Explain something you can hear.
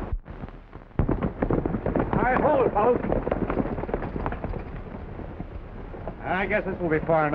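Horses' hooves clatter on rocky ground.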